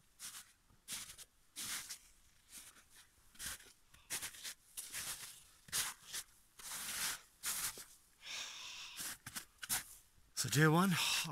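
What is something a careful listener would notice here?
Boots crunch through snow in slow, regular steps.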